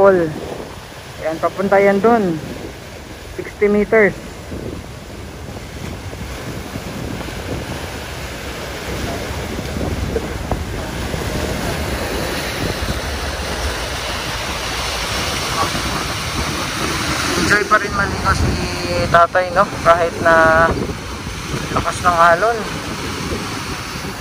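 Water churns and splashes against a rocky shore.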